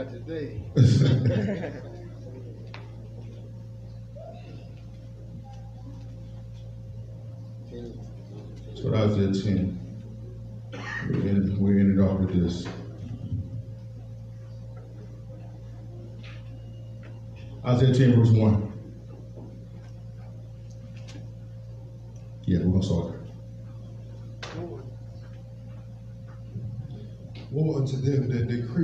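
A man speaks into a microphone in short bursts with long pauses, heard through loudspeakers in an echoing hall.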